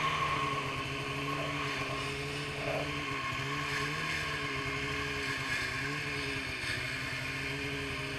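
A second snowmobile engine idles nearby.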